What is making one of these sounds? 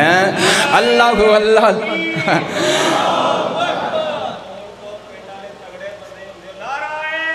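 A man preaches with passion into a microphone, his voice rising in long sung phrases.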